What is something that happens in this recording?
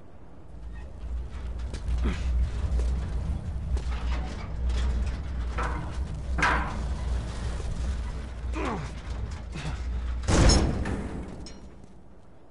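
A heavy metal bin scrapes and rumbles as it is pushed across the ground.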